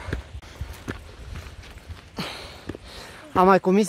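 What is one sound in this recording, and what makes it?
Footsteps crunch on a gravelly path.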